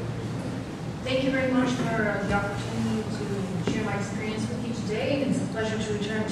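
A woman speaks calmly through a microphone and loudspeakers in a large hall.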